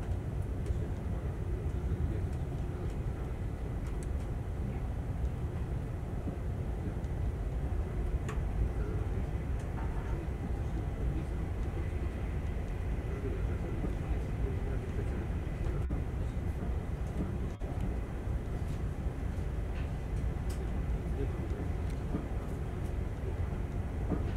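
Wheels click and rattle over rail joints.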